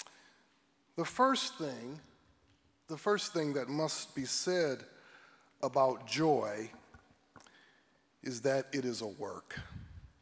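A man speaks slowly and calmly into a microphone.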